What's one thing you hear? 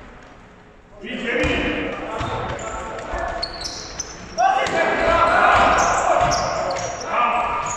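Young men call out and shout to each other across the hall.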